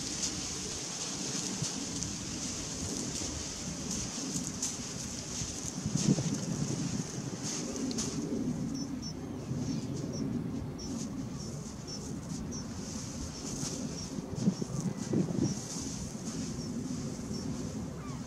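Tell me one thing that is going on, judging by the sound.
Wind blows steadily outdoors, rumbling and gusting.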